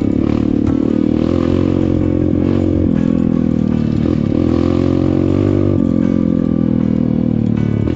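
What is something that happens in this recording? A motorcycle engine drones steadily up close, rising and falling with the throttle.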